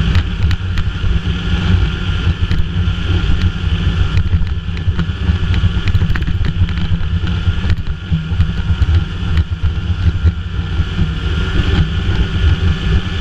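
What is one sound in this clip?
A snowmobile engine drones as the sled rides along a trail at speed.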